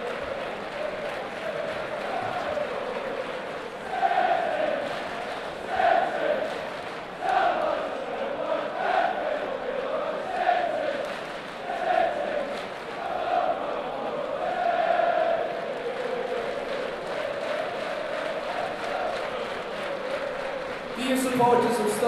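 A large crowd chants loudly in rhythm across an open stadium.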